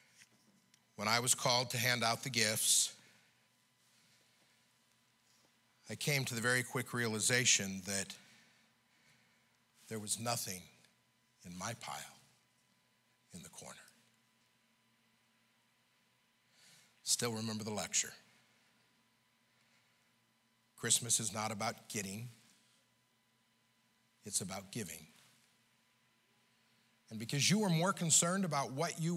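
An elderly man preaches with emphasis through a microphone, in bursts with long pauses.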